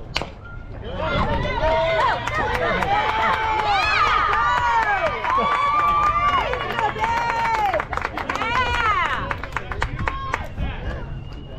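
Young women cheer and shout loudly from nearby.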